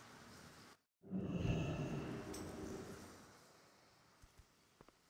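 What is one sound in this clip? A deep magical whoosh swells and slowly fades.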